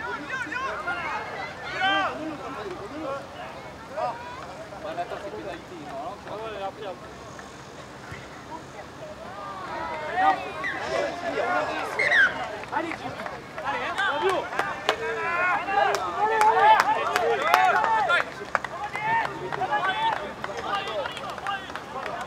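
A crowd murmurs and calls out in open stands outdoors.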